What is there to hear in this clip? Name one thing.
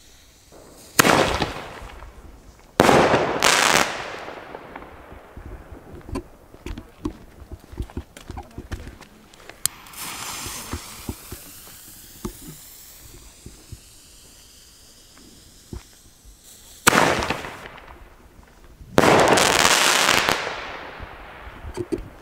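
Fireworks bang loudly outdoors and echo away.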